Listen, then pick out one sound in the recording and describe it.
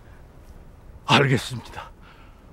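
An elderly man speaks in a low, grave voice.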